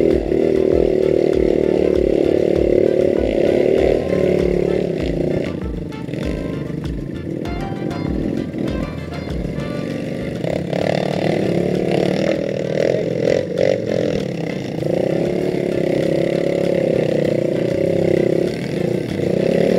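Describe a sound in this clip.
A dirt bike engine revs and putters close by.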